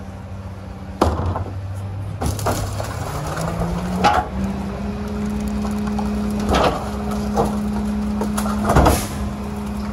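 A plastic trash bin bangs and thuds against a truck.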